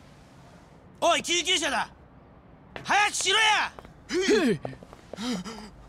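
A man shouts urgently for help.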